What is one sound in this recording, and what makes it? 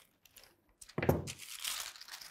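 Fabric rustles loudly as it is lifted and shaken.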